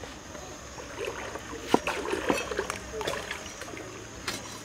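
A knife slices vegetables on a wooden board.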